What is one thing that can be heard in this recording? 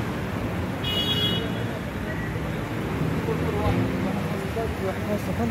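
Young men talk casually outdoors.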